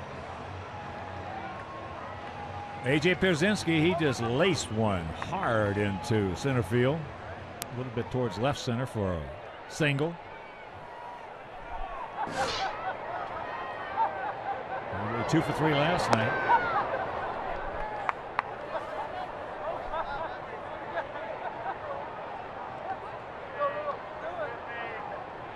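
A crowd murmurs in a large open stadium.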